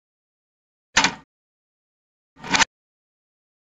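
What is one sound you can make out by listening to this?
A cupboard door clicks open.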